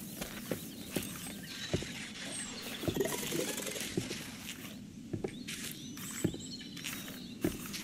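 Footsteps thud on wooden steps and boards.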